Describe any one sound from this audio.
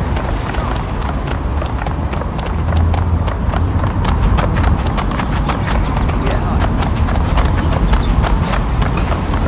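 Footsteps slap quickly on pavement as a man runs.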